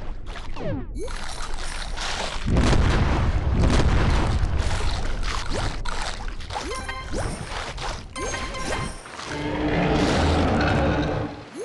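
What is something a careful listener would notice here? A game shark chomps and bites its prey with crunching sounds.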